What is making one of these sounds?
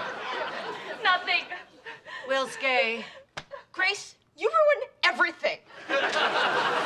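A woman speaks with exasperation nearby.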